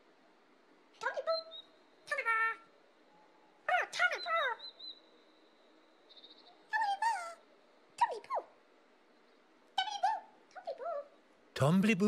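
High, childlike voices chatter playfully.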